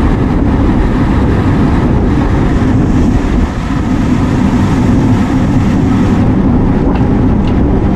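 Wind rushes loudly over the microphone.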